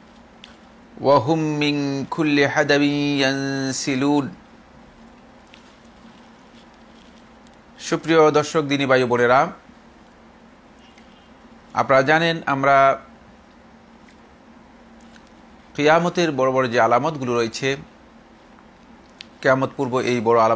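A middle-aged man recites in a melodic chanting voice close to a microphone, pausing between phrases.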